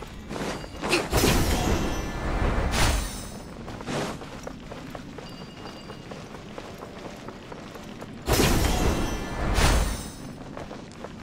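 A magical shimmering whoosh sweeps past.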